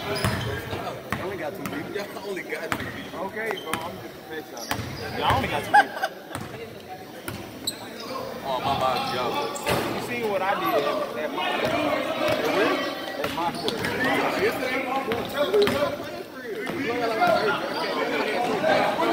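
Young players and spectators shout and chatter across the echoing gym.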